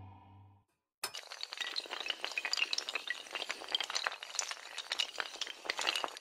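Many dominoes clatter rapidly as they topple one after another.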